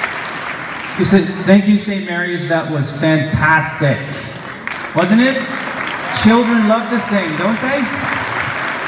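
A man speaks through a microphone and loudspeaker in an echoing hall.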